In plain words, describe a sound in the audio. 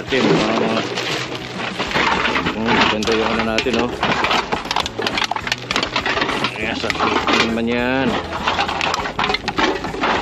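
A plastic bag rustles as it is handled.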